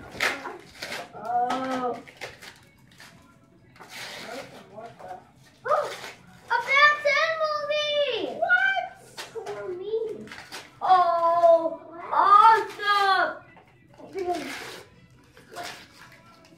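Wrapping paper rustles and tears.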